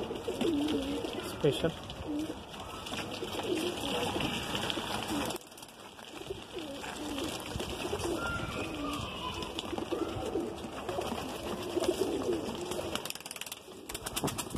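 Pigeons coo with low, rolling calls close by.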